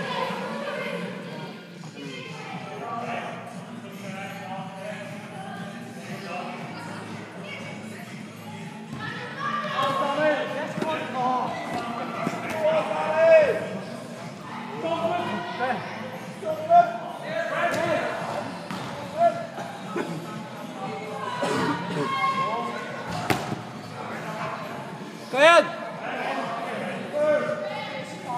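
Children shout and call out in an echoing hall.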